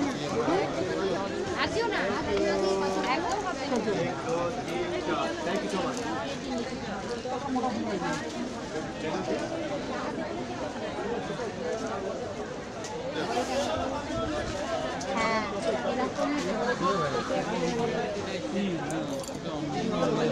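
A crowd of men and women chatter all around, close by.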